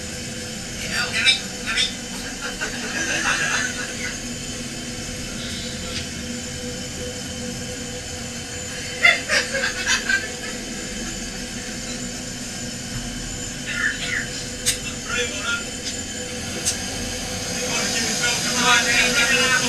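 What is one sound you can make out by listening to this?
Several men talk and laugh with animation close by.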